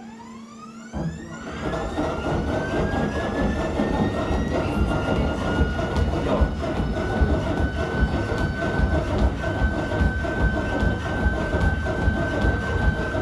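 Running shoes thud rhythmically on a treadmill belt.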